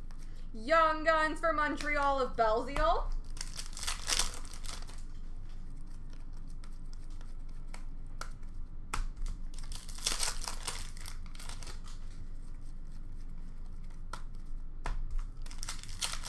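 Hands shuffle and flick through a stack of trading cards.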